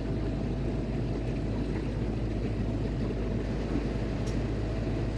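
A pump motor hums steadily, close by.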